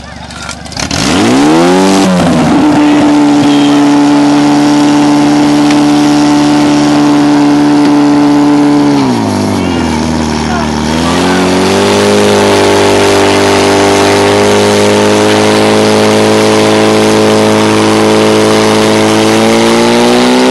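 A pump engine starts, revs up and drones loudly and steadily, dipping briefly before revving again.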